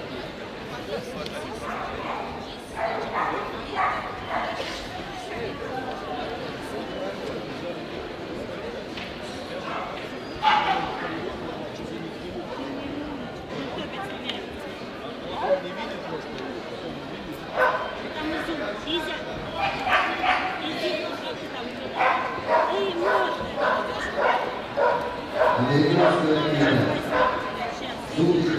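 A crowd of men and women murmurs and chatters in a large echoing hall.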